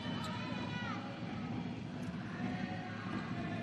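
Sneakers squeak sharply on a hard indoor court in a large echoing hall.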